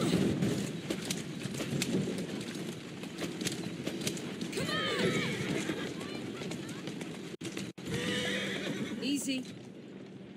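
A horse-drawn carriage rattles along with clopping hooves.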